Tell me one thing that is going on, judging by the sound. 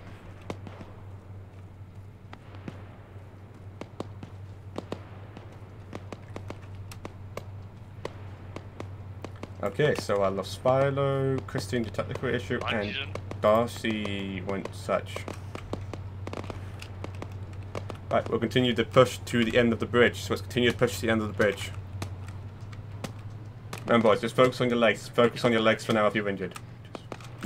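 Footsteps crunch on a dirt road.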